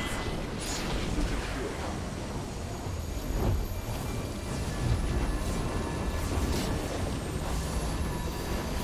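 Fiery whooshes swirl repeatedly.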